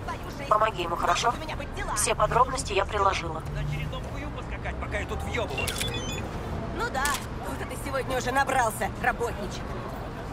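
A young woman talks calmly over a call.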